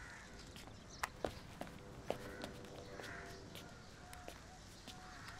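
Taps and clicks sound from a phone being handled.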